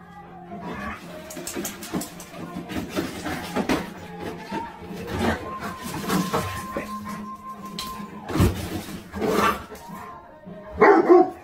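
Dog paws scrabble and tap on a hard floor.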